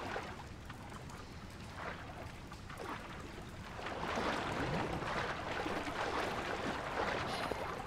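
Heavy rain falls steadily.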